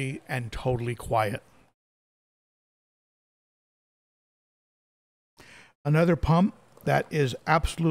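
A middle-aged man talks calmly into a close microphone, with pauses.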